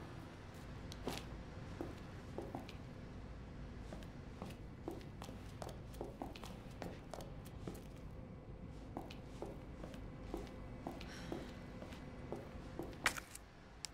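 Footsteps tap steadily on a hard floor.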